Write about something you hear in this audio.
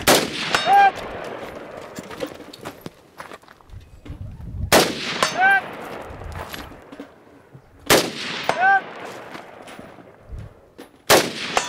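A rifle fires loud single shots outdoors, each followed by a rolling echo.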